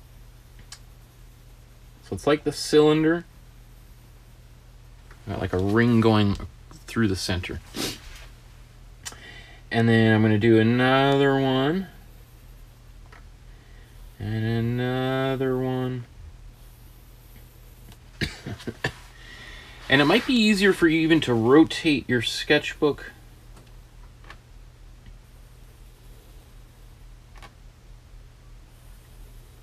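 A pencil scratches lightly on paper.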